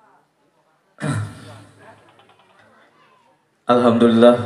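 A man speaks into a microphone, heard through loudspeakers.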